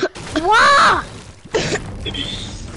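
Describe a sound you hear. Gunfire cracks with bullets striking wood.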